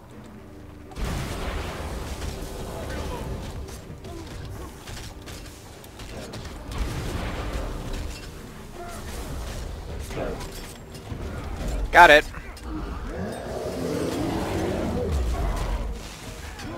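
Game combat sounds of magic blasts and hits crackle and thud.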